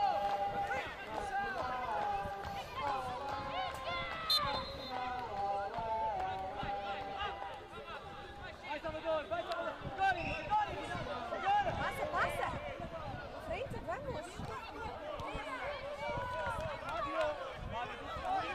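Young players shout to each other across an open outdoor pitch.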